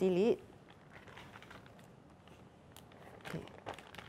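A plastic bag crinkles softly.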